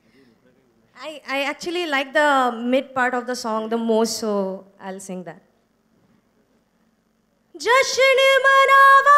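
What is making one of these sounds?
A young woman sings into a microphone through loudspeakers.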